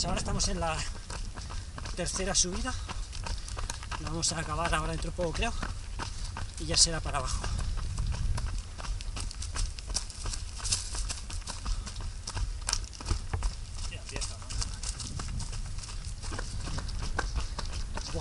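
Running footsteps crunch on a dirt trail.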